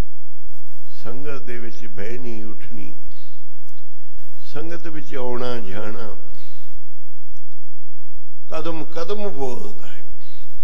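An elderly man speaks slowly and with feeling into a microphone, in long drawn-out phrases.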